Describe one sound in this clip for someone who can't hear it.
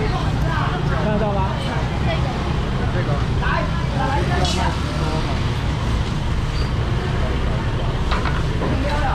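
A steady low rumble of street noise fills the background.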